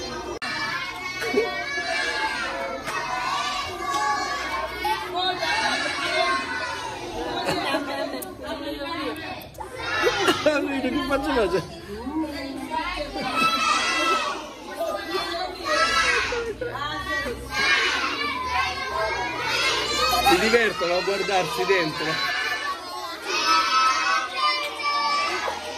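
A crowd of young children chatter, shout and laugh excitedly close by.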